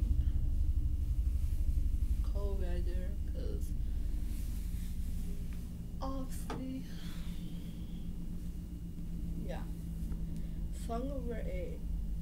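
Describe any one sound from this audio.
Fabric rustles as a garment is shaken and handled.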